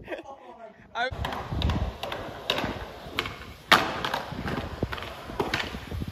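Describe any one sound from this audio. Skateboard wheels roll over concrete.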